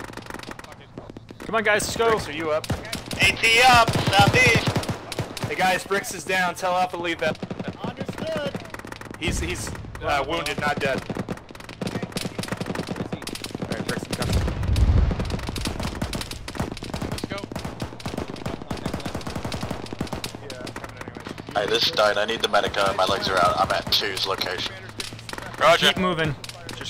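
Gunfire cracks in rapid bursts nearby.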